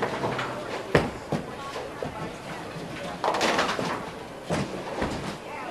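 A bowling ball rumbles as it rolls down the lane.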